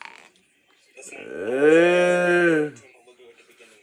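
A young man sings one long, drawn-out note up close.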